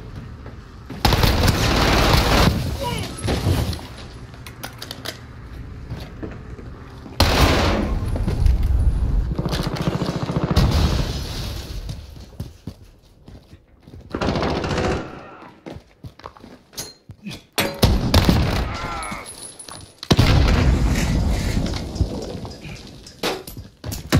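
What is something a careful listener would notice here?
Rapid gunfire bursts out loudly in short bursts.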